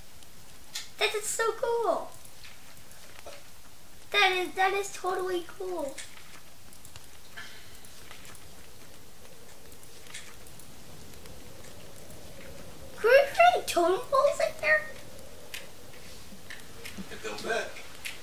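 A young boy talks with animation into a microphone, in short bursts.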